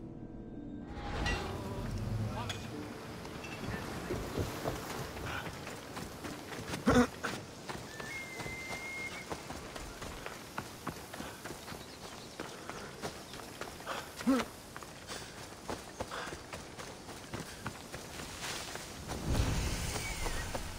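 Footsteps thud quickly on wooden planks and then on dirt.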